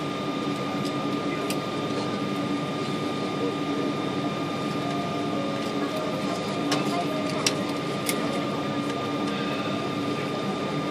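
A parked jet airliner hums steadily, muffled as if heard through glass.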